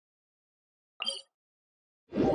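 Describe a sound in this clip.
A short game menu chime sounds.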